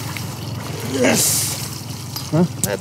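A fish splashes in the water beside a boat.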